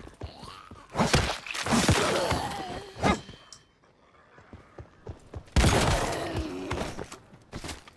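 Heavy melee blows strike with loud thuds.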